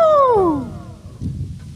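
A group of bamboo pipes plays together, its pitch sliding down.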